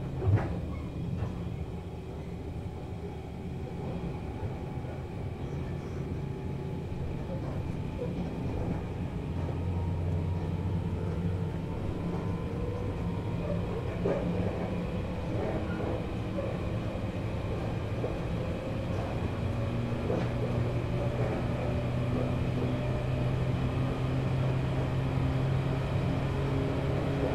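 An electric train's motors hum and whine as it runs, slowly rising in pitch.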